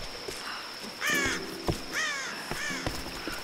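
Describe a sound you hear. A bird chirps nearby.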